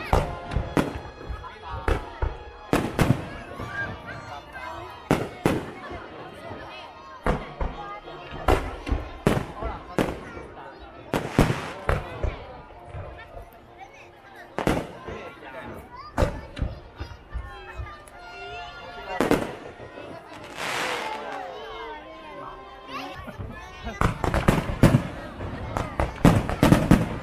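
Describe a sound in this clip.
Fireworks burst with loud booms and bangs outdoors.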